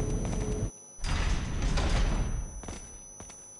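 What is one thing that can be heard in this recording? A heavy metal door slides open with a loud rumble.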